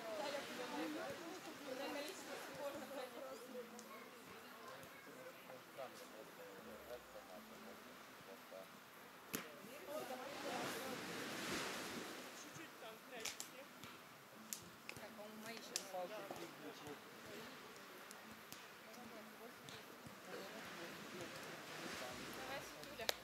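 Several people talk and call out in the distance outdoors.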